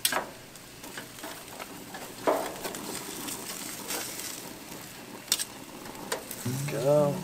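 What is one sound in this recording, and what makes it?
Metal tongs clink and scrape against a grill grate.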